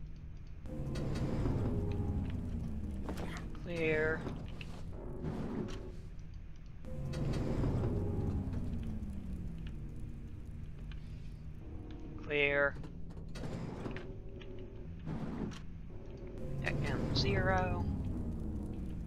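A lift whooshes and rumbles as it moves, its pitch sliding down.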